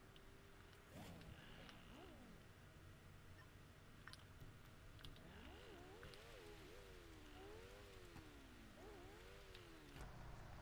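A car engine revs and hums faintly.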